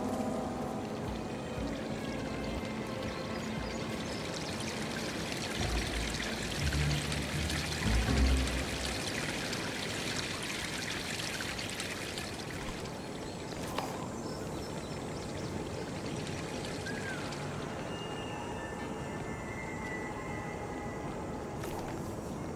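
Footsteps crunch on grass and stone.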